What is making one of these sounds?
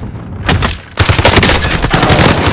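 Rapid rifle gunfire rings out close by.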